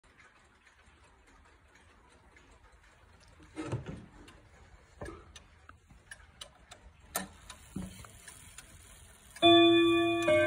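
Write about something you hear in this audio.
A wall clock ticks softly and steadily.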